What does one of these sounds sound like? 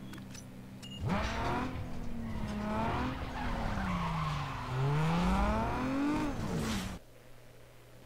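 A car engine revs hard, rising and falling, then speeds away.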